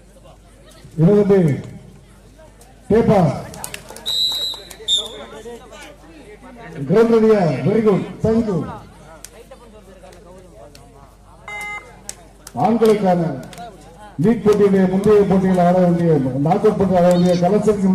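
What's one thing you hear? A young woman chants loudly and rapidly during a raid.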